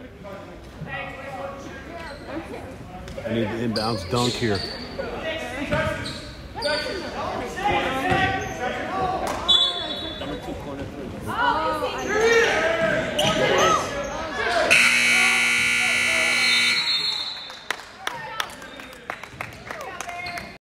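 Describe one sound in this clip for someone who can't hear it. Young players and spectators shout and call out in a large echoing gym.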